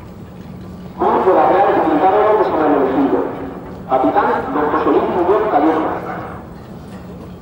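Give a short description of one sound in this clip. A man speaks loudly and firmly over a loudspeaker.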